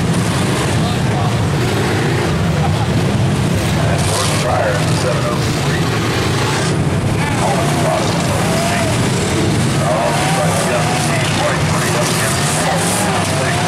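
Metal crunches as cars collide.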